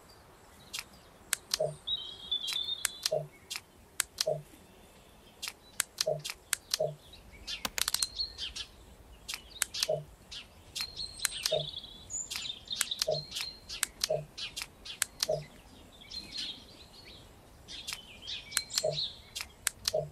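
Game pieces click and chime as they are moved and removed.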